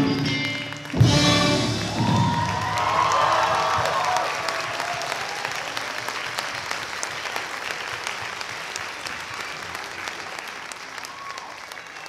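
A crowd claps and cheers in a large echoing hall.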